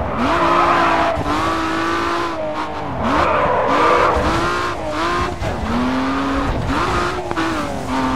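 Tyres screech as a car slides sideways.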